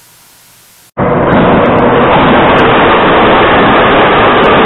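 A subway train roars loudly through a tunnel.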